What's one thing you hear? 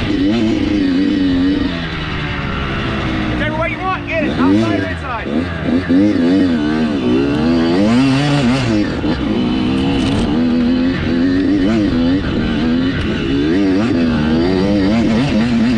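A dirt bike engine revs up and down close by, rising and falling in pitch.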